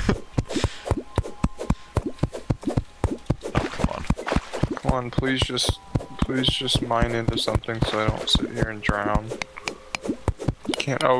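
A pickaxe chips rapidly and steadily at rock.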